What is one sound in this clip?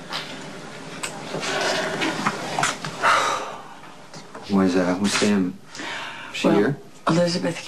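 A man speaks quietly and tensely close by.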